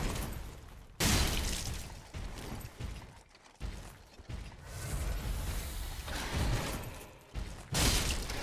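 Metal swords clash and clang sharply.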